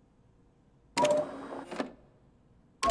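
A machine button clicks with a short electronic chime.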